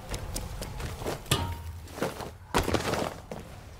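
A metal pipe clanks and rattles under a climbing man's grip.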